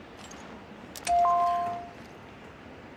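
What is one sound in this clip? A short chime rings as a puzzle is solved.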